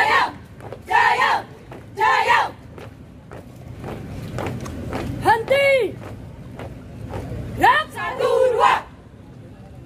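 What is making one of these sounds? A young woman shouts marching commands outdoors.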